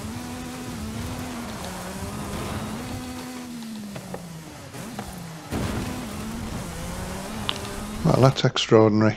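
A race car engine roars and revs up and down at speed.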